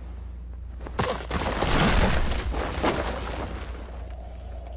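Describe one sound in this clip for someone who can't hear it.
A heavy body crashes and ploughs through earth with a rumble.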